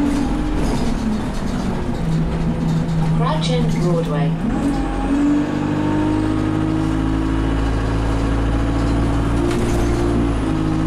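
A bus engine hums and whines steadily as the bus drives.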